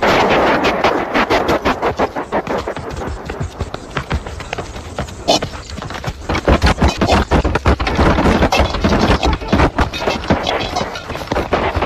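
Heavy blows and thuds land in a scuffle.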